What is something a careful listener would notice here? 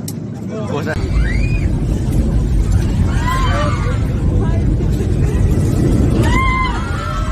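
Passengers scream in alarm inside an airliner cabin.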